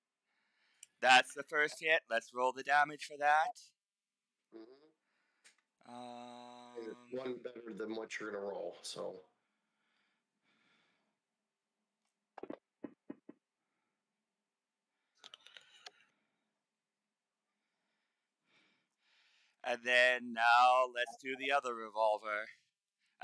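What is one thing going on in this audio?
A man talks casually into a headset microphone, close up.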